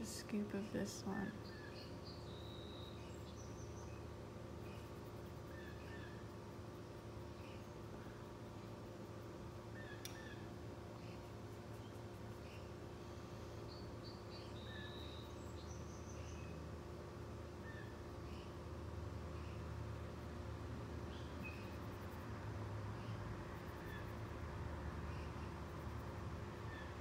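A paintbrush softly strokes across paper.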